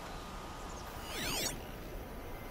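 A shimmering electronic sweep glides down and up in pitch.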